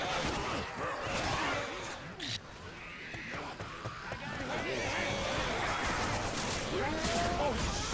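Zombies snarl and groan nearby.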